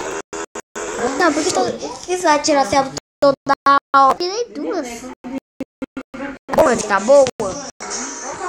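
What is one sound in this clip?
A young child talks with animation close to the microphone.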